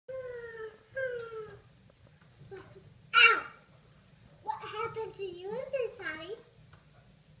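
A toddler girl babbles and squeals playfully up close.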